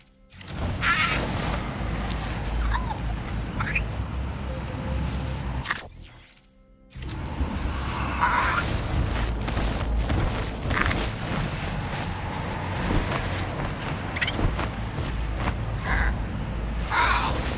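Wind rushes steadily past a flying dragon.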